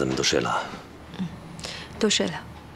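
A young woman speaks with concern, close by.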